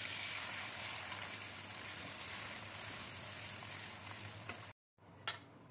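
A wooden spatula scrapes and stirs in a metal pan.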